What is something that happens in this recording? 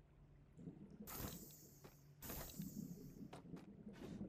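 A bright sparkling shimmer sounds twice.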